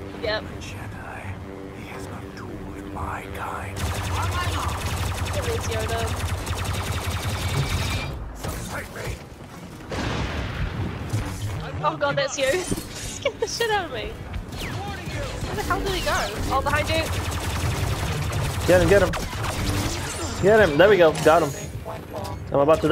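A lightsaber hums and swooshes.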